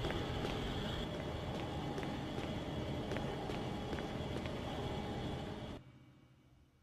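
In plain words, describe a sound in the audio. Footsteps tap steadily on a wet hard floor.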